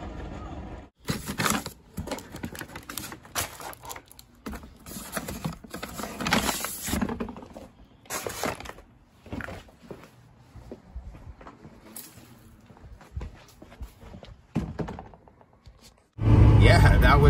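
Paper grocery bags rustle and crinkle as they are handled.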